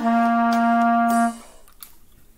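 A clarinet plays a steady held note close by.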